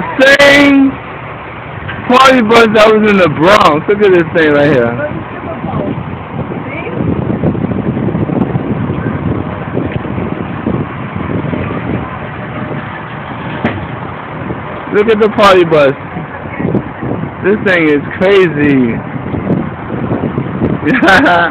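A large vehicle's engine rumbles as it rolls slowly along a street.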